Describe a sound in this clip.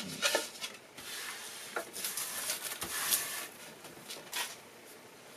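A hand brushes wood shavings across a wooden board.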